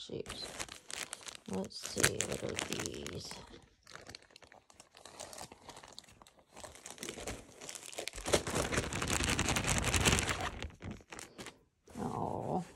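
Plastic bags crinkle and rustle close by.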